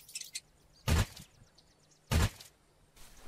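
A pickaxe thuds into a carcass.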